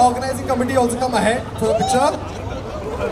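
A man speaks loudly into a microphone over a loudspeaker, outdoors.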